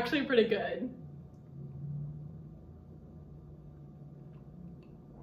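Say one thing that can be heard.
A young woman sips a drink.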